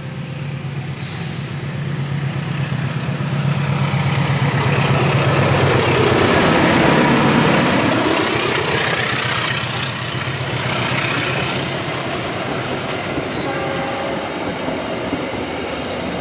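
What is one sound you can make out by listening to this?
A diesel train rumbles and clatters past close by on the rails.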